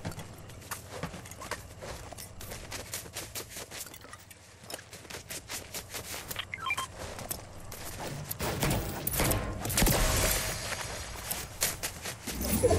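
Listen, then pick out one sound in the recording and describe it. Quick footsteps crunch over snow.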